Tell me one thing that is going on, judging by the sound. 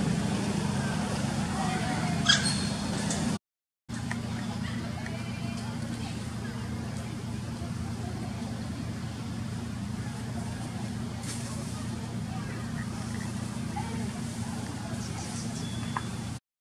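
Leaves and branches rustle as a monkey climbs through a tree.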